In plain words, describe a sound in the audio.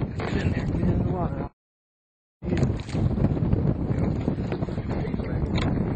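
A fish thrashes and splashes in the water.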